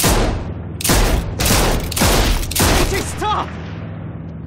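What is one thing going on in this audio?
Gunshots ring out in quick succession, loud and close.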